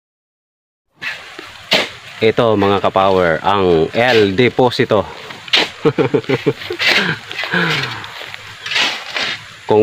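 A hoe chops into the soil with dull thuds.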